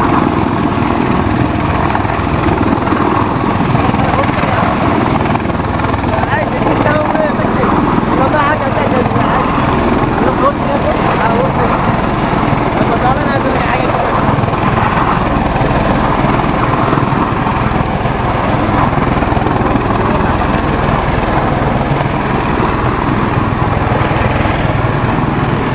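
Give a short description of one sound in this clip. A V-22 Osprey tiltrotor hovers low over the sea with a deep rotor roar.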